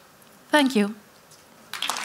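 A middle-aged woman speaks briefly into a microphone.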